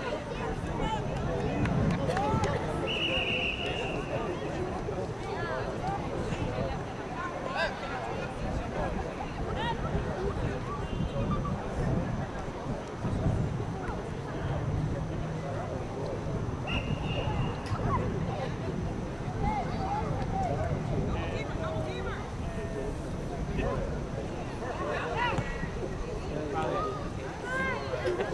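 Young women shout and call out to each other across an open field outdoors.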